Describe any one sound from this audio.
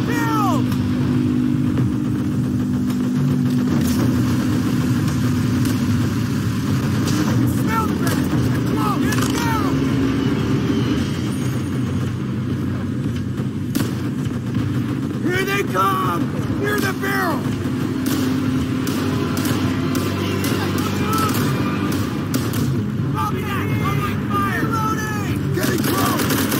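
Rifle shots crack repeatedly, with sharp echoing reports.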